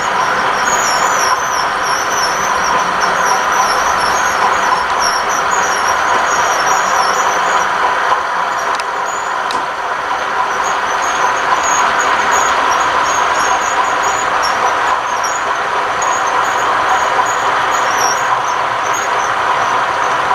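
A model locomotive's motor hums steadily.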